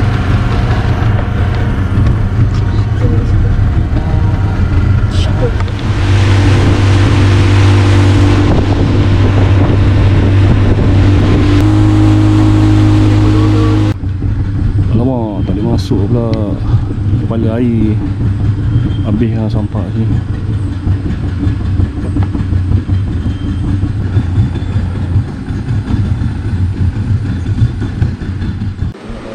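A boat's outboard motor drones steadily.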